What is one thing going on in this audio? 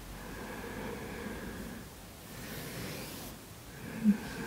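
Clothing rustles against a mat as a woman shifts her body.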